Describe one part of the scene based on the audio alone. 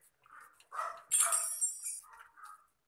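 Cartoon soap bubbles fizz and squeak.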